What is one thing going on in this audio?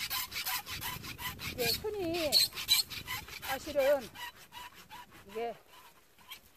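Pruning shears snip through bare branches.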